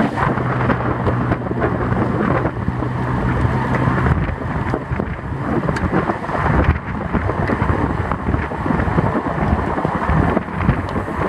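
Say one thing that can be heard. Wind roars loudly against the microphone of a fast-moving bicycle.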